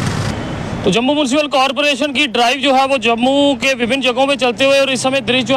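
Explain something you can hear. A man speaks clearly into a microphone, reporting.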